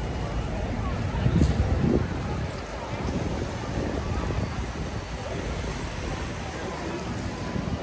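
Cars drive past on a wet street with a hiss of tyres.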